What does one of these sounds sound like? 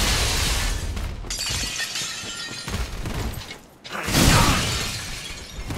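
Ice crystals erupt from the ground with a sharp crackling crash.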